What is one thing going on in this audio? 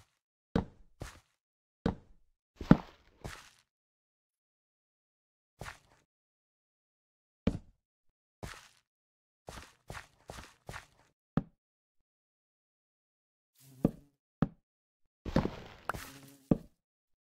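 Seeds are planted in soft soil with short, muffled thuds, one after another.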